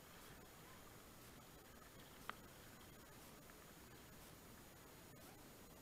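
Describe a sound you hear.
A paddle splashes and dips into calm water.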